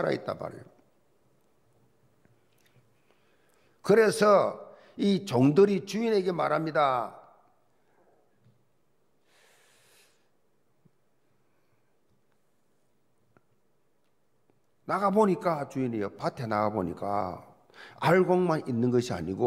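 An elderly man speaks with emphasis into a microphone, in a large echoing hall, pausing at length between phrases.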